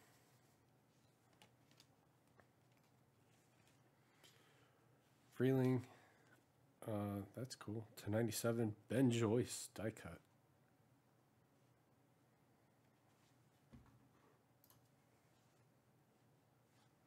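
Trading cards slide and rustle as they are shuffled between hands.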